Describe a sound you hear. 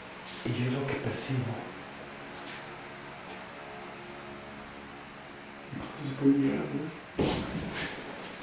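A man speaks quietly at some distance.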